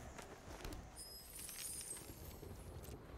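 A bright magical shimmer rings out in a game.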